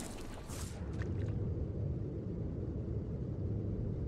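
A low, muffled underwater rumble swells steadily.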